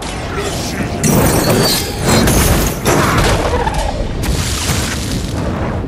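Fiery blasts and heavy blows crash loudly in quick bursts.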